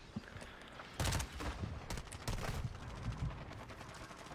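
Explosions boom loudly.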